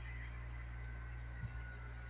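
A cat chews food close by.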